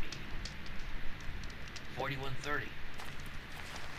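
A fire crackles and pops close by.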